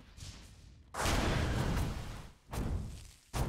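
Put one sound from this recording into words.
A burst of fire roars loudly.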